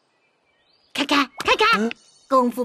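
A boy speaks in a cartoonish high voice.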